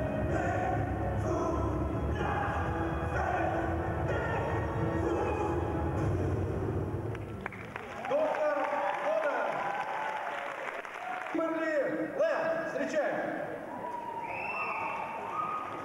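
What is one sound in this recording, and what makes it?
Loud dance music with a heavy beat plays over loudspeakers in a large hall, then gives way to a softer melody.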